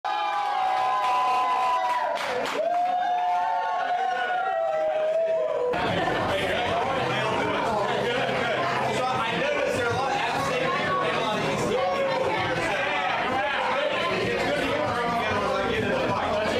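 A crowd of men and women chatters loudly and excitedly close by.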